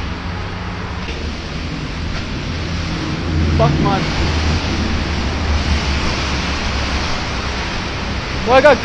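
Wind rushes steadily outdoors.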